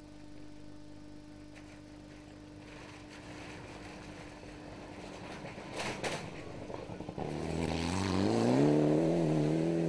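A rally car's engine roars closer, revving hard.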